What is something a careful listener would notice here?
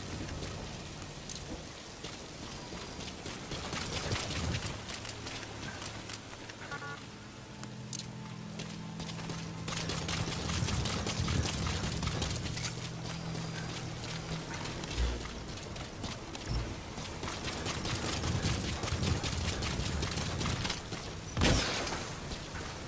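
Footsteps patter quickly as a soldier runs.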